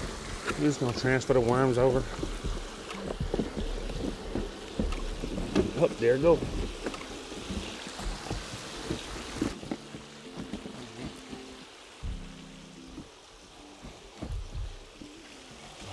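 A plastic bin knocks and scrapes as it is lifted and set down.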